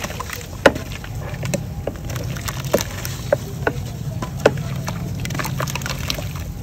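Water sloshes and drips in a basin.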